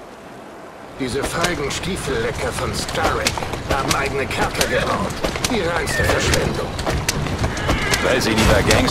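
Horse hooves clop steadily.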